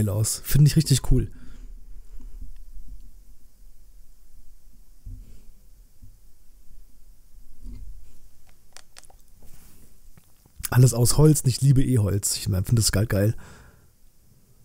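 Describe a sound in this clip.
A man speaks casually, close to a microphone.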